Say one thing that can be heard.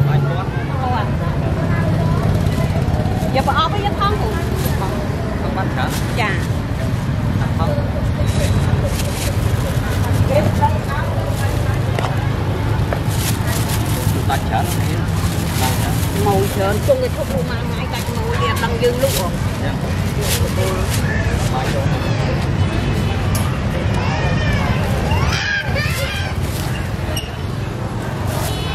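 People chatter in the background of a busy outdoor market.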